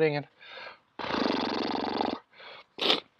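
A young man blows his nose into a tissue.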